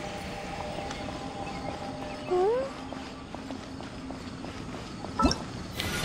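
Quick light footsteps patter on stone.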